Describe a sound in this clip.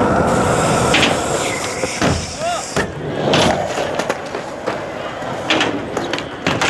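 A skateboard clacks and knocks against a ramp edge.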